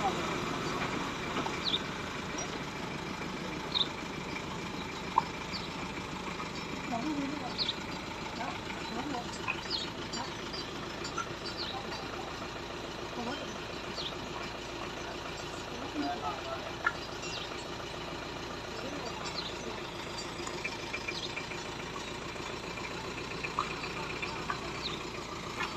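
Bricks clink and knock as they are tossed and stacked.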